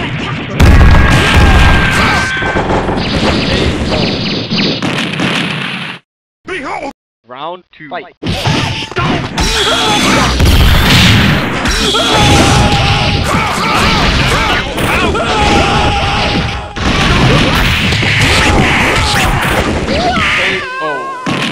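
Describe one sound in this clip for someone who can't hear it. Punches and kicks land with loud smacking hits.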